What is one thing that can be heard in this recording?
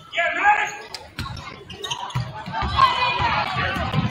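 A basketball bounces with dull thuds on the floor.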